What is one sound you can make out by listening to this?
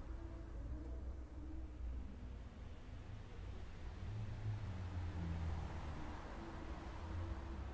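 A man chants in a low, drawn-out voice into a microphone.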